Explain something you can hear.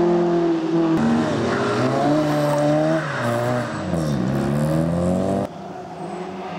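A second rally car engine roars, changing gears through a corner.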